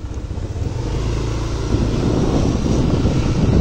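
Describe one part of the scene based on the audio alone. Wind rushes past as the scooter moves.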